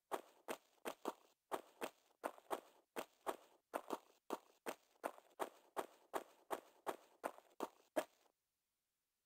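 Quick footsteps run across a hard floor with a slight echo.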